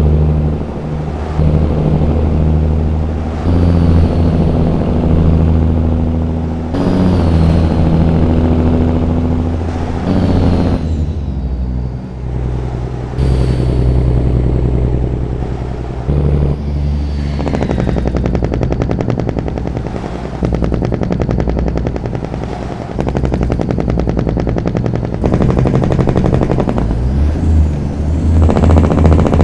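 Tyres roll and hum on the road surface.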